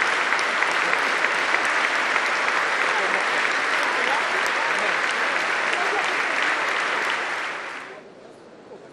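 A large crowd applauds loudly and steadily, then the clapping fades away.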